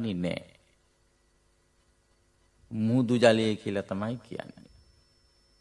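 An elderly man chants in a slow, steady voice.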